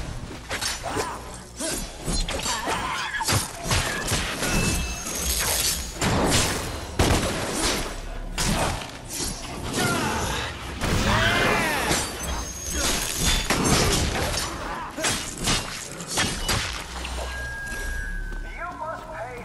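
Sword slashes and metallic hits clash in a video game fight.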